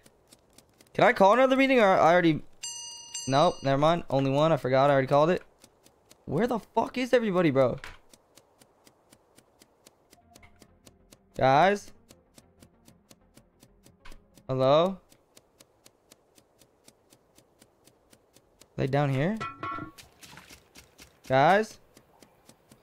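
A man talks with animation, close to a microphone, in short bursts.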